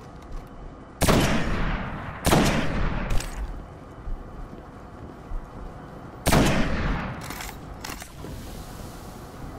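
Gunshots fire in bursts.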